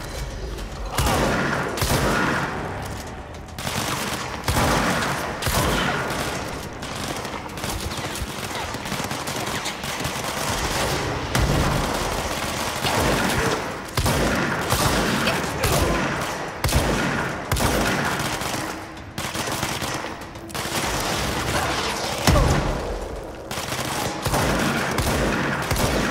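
Explosions boom and debris crashes.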